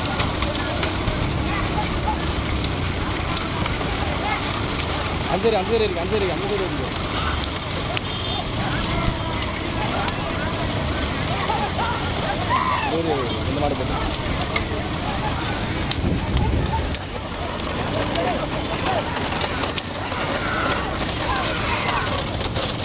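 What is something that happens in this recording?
Cart wheels rattle and rumble on a paved road.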